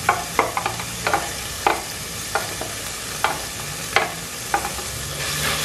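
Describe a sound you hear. A plastic container knocks against a pot's rim.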